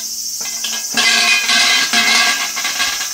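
A large shrine bell rattles and clangs as its rope is shaken.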